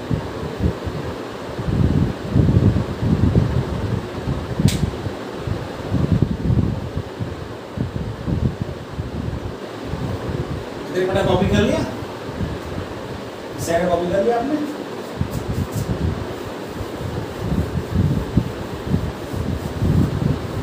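A middle-aged man speaks steadily, as if teaching, close by.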